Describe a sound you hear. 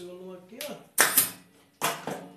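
A staple gun fires with a sharp snap.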